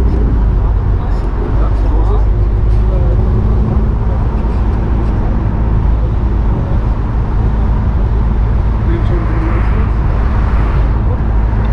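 Wind rushes loudly past the car.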